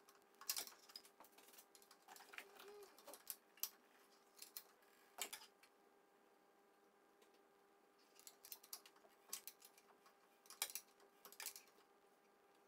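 A wrench clicks and ratchets against metal engine parts.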